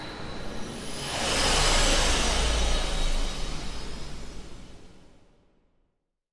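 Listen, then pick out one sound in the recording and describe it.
A shimmering magical whoosh swells and then fades away.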